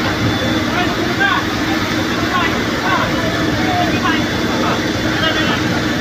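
A crowd of men talks and shouts excitedly nearby.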